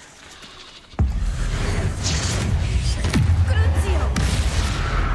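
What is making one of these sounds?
Magic blasts crackle and roar loudly.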